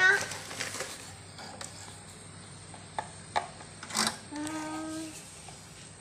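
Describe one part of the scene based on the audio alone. Plastic parts of a fan click and knock as they are handled.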